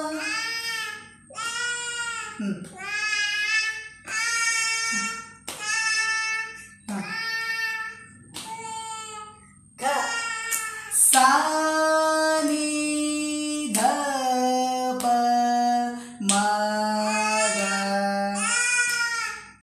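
A man sings a slow melody close by.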